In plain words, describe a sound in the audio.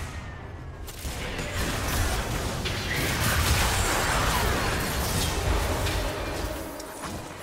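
Magic blasts and weapon hits clash loudly in a fast video game fight.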